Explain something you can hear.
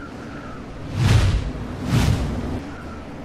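Loud explosions boom twice in quick succession.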